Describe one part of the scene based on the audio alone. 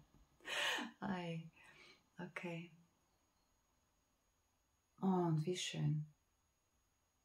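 A middle-aged woman speaks calmly and warmly into a close microphone, with pauses.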